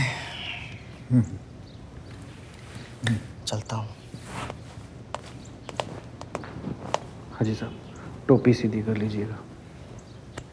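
A young man speaks in a low voice.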